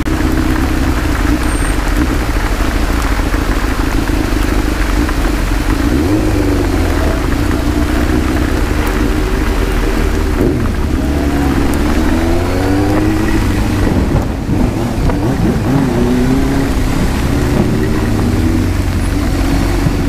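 Wind rushes loudly past a helmet.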